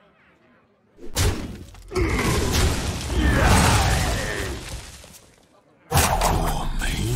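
Loud game attack effects crash and whoosh.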